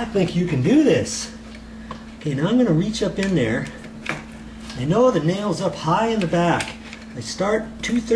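Metal scrapes and clicks as a box is pried from a wall.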